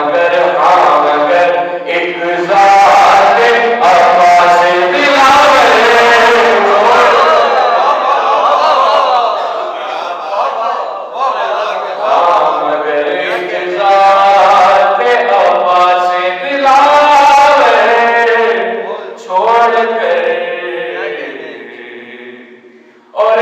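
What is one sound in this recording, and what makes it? A young man recites with passion into a microphone, heard through loudspeakers in an echoing room.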